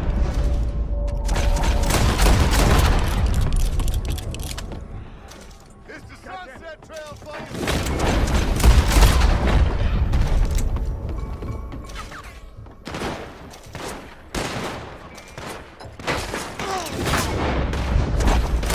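Revolver shots crack in quick bursts.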